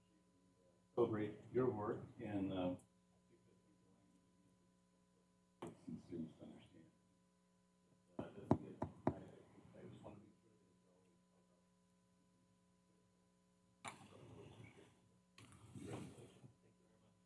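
A man speaks through a microphone in short bursts, with pauses in between.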